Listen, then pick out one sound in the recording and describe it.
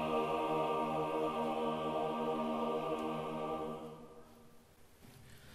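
A large choir sings a sustained chord that fades away.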